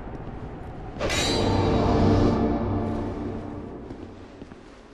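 A ghostly magical whoosh swells up suddenly and slowly fades.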